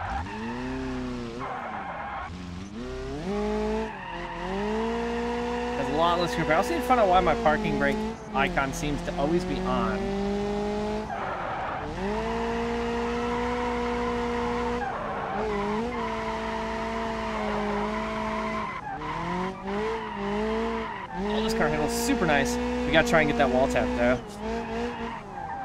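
A car engine revs hard, rising and falling through the gears.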